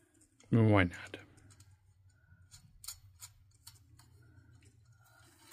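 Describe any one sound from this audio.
Light clicks and taps come from a small metal ornament being handled.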